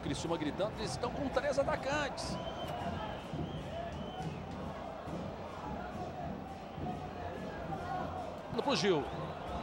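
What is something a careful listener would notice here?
A large crowd cheers and chants throughout an open stadium.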